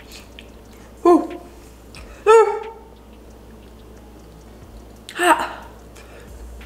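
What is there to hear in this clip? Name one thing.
A young woman exclaims loudly in short bursts.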